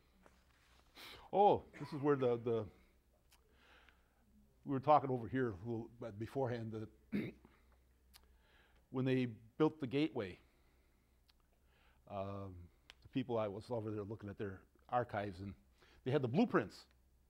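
An elderly man speaks with animation into a clip-on microphone.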